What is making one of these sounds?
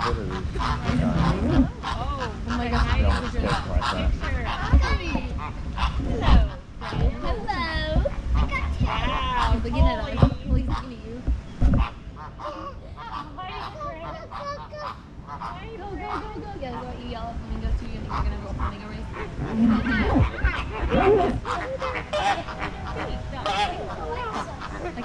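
A group of people talk and call out nearby, outdoors.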